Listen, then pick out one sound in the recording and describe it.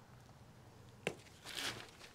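A plastic pot knocks against a hard floor.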